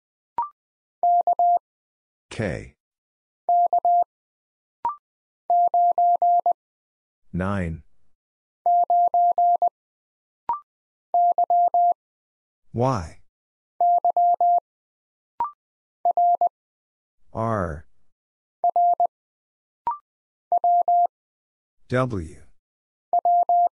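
Morse code beeps sound in short bursts of quick, steady tones.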